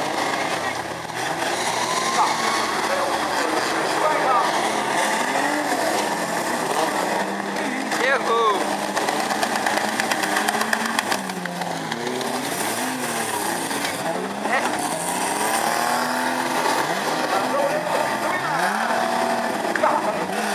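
Many car engines roar and rev loudly outdoors.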